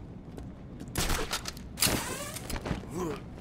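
A grappling line fires and zips upward with a sharp whoosh.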